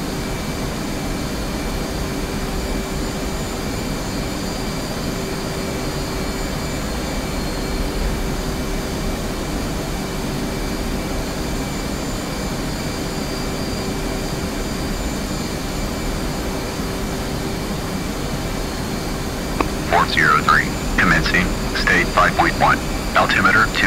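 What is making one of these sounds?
A jet engine hums and rumbles steadily.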